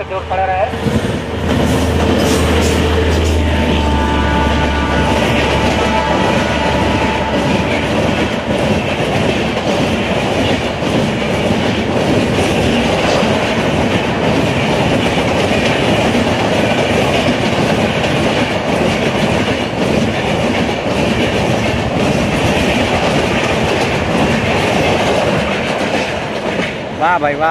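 A passenger train speeds past close by with a loud, steady roar.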